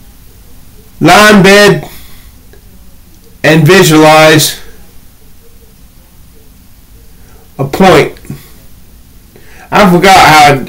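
A middle-aged man sings loudly in short, wavering bursts with pauses between, heard close through a microphone.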